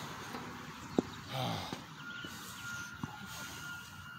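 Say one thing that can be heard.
A shoe knocks against a metal bar.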